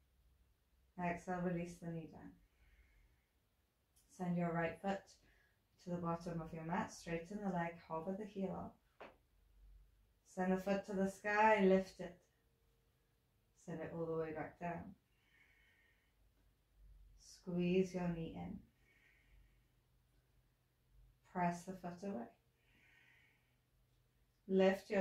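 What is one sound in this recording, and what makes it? A woman speaks calmly and clearly, close by, with long pauses.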